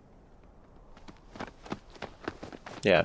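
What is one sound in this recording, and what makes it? Footsteps scuff across hard dirt ground.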